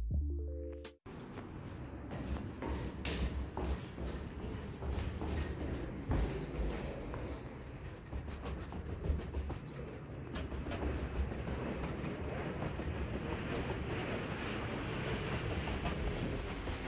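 Footsteps go down concrete stairs.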